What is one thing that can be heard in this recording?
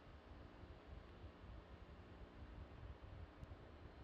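Vapor hisses softly as a rocket vents on the launch pad.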